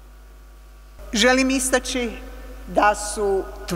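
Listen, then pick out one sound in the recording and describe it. An older woman speaks into a microphone in an echoing hall.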